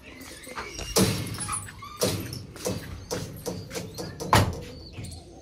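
A wire cage door rattles and bangs.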